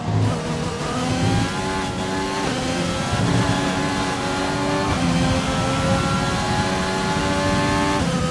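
A racing car engine screams at high revs, rising in pitch and dropping with each quick gear change.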